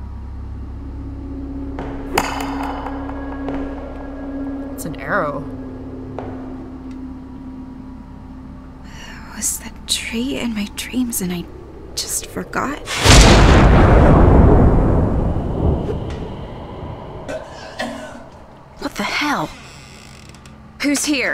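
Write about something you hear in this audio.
A door creaks and shuts.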